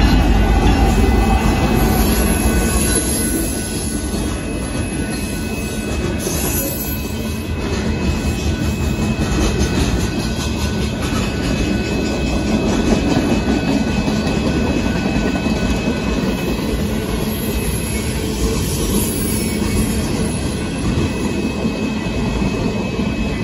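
Freight car wheels clatter and rumble over the rails.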